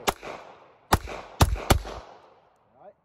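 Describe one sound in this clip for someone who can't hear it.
A pistol fires several loud shots outdoors, echoing across open ground.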